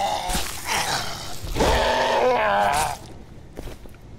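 A blade hacks into flesh with heavy, wet thuds.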